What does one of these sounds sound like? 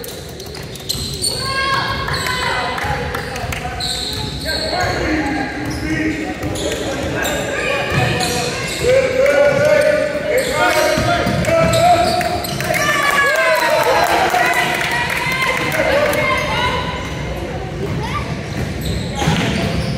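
Young people shout and call out across the gym.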